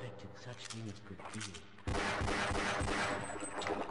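A pistol fires several shots.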